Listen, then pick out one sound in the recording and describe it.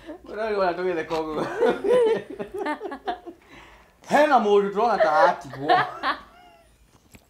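A young woman laughs loudly and happily up close.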